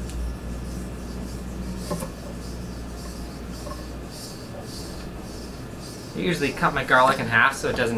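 A knife chops on a wooden cutting board.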